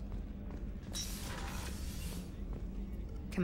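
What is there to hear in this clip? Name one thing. A door slides open with a soft hiss.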